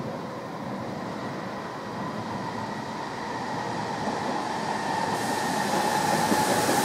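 A train approaches with a steady rumble that grows louder.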